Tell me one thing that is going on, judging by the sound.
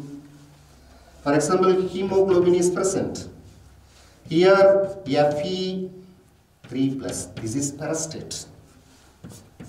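A man lectures with animation, close to a microphone.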